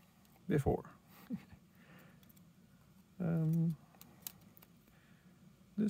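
Small plastic parts click softly as a cable is fitted into a connector.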